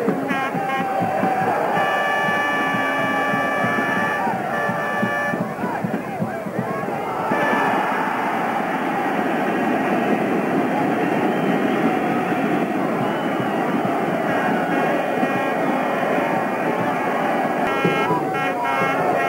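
A large crowd cheers and chants loudly outdoors.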